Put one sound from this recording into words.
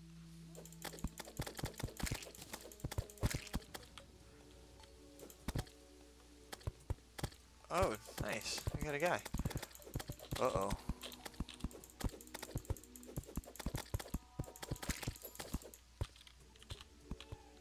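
Quick game sound effects of a sword swinging and striking clatter rapidly.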